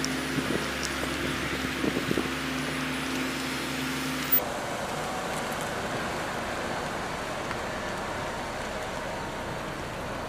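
Car tyres scrub on wet pavement.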